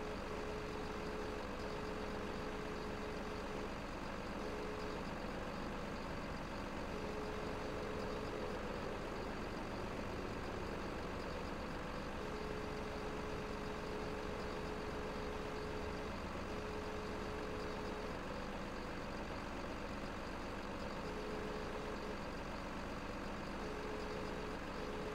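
A heavy machine's engine hums steadily.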